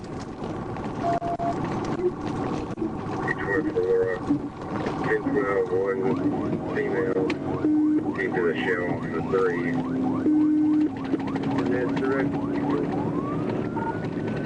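Tyres hum loudly on the road.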